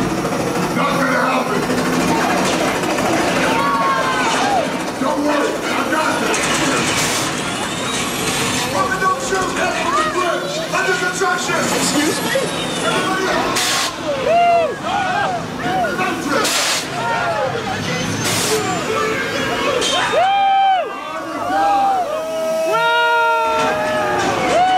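A crowd of young people shout and scream with excitement close by.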